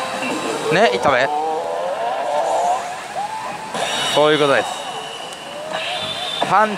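A slot machine plays loud electronic music and sound effects through its loudspeakers.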